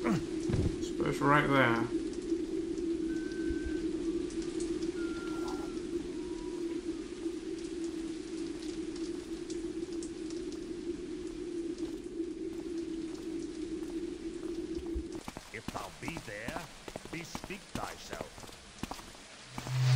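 Footsteps tread slowly on cobblestones.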